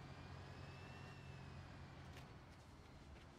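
A heavy road milling machine's diesel engine hums steadily.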